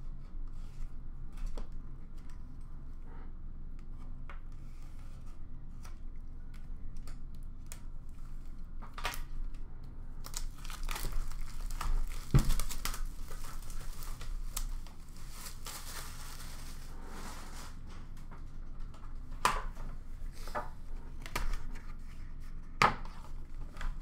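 Hands handle a cardboard box, tapping and rubbing on it.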